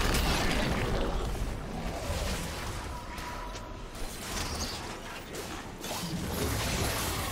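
Game spell effects and combat sounds clash and crackle.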